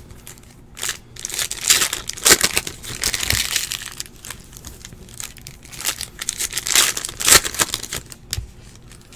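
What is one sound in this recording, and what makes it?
Stiff cards flick and rustle as they are shuffled by hand.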